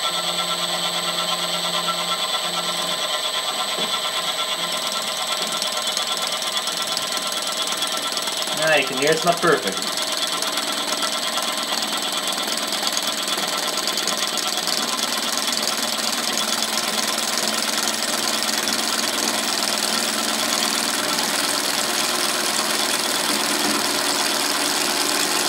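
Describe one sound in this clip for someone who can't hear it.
A router spindle whines steadily as it cuts.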